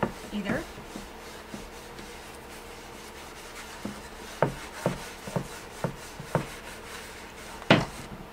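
A sponge dabs lightly on a hard board.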